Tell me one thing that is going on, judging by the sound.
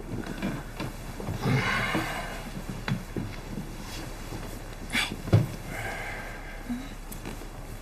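Bedding rustles as a blanket is pulled up.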